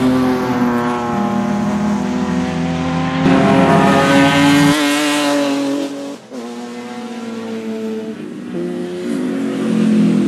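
Racing car engines roar loudly, revving up and down as the cars speed past.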